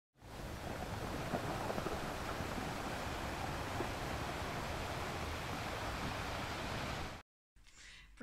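Water laps and splashes gently outdoors.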